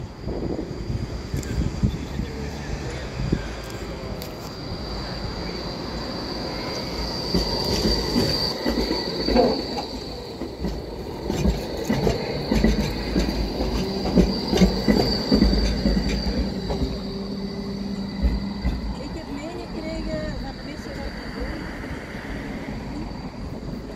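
A tram rumbles past close by on its rails.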